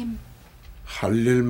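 An elderly man speaks in a low voice.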